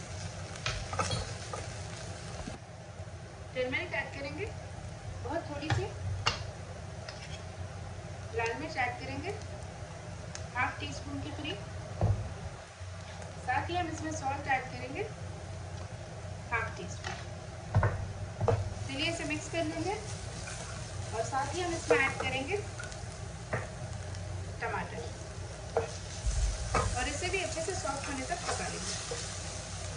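A wooden spoon scrapes and stirs in a frying pan.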